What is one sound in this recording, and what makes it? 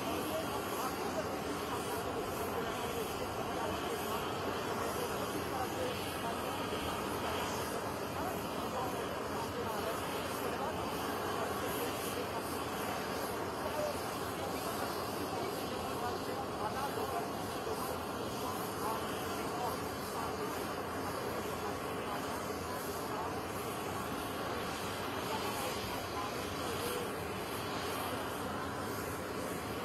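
A crowd murmurs and chatters outdoors.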